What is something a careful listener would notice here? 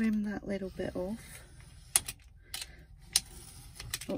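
A craft knife scrapes through paper along a ruler.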